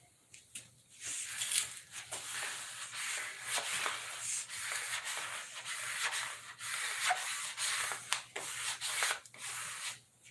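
A paper towel rubs across a tabletop.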